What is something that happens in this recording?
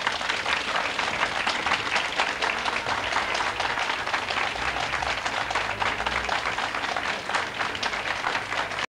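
An audience claps loudly and steadily.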